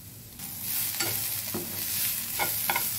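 A spoon scrapes and taps against a pan while stirring.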